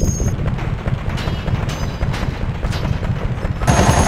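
Car engines idle and rumble.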